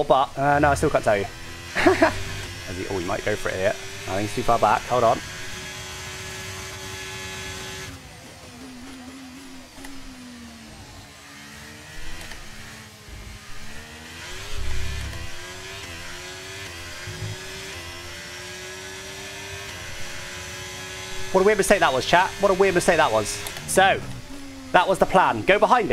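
A racing car engine whines, rising and falling in pitch as it shifts gears.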